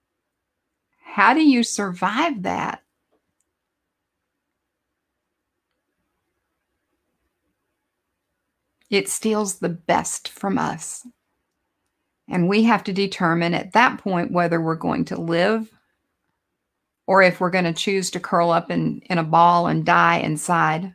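An older woman talks calmly over an online call, with pauses.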